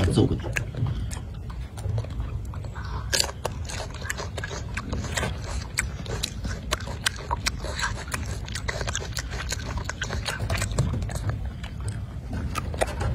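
A monkey chews grapes wetly up close.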